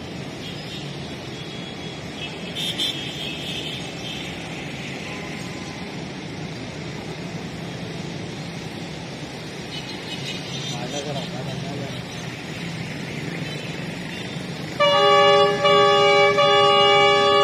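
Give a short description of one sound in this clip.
A diesel locomotive engine rumbles steadily as it approaches.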